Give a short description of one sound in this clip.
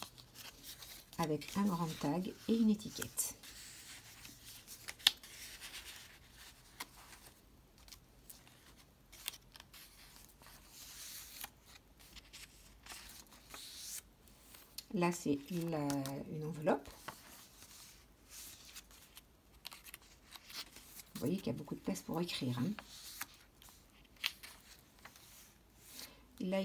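Stiff paper pages rustle and flap as they are turned.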